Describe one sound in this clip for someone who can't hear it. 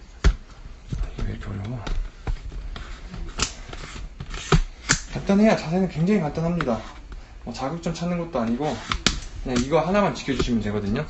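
A young man talks casually close to the microphone.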